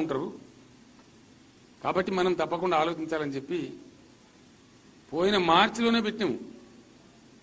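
An elderly man speaks slowly into a microphone, with pauses.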